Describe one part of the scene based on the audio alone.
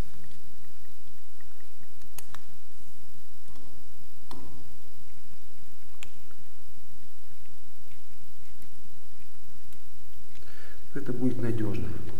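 A screwdriver scrapes and clicks against metal screws.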